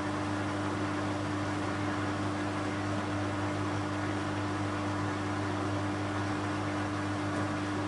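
A washing machine drum turns with a steady motor hum.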